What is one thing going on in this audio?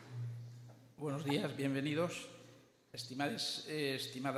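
An elderly man speaks calmly through a microphone in a large hall.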